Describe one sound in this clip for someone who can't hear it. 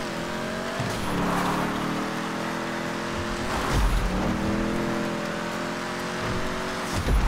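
A car engine roars steadily, dropping and rising in pitch as gears shift.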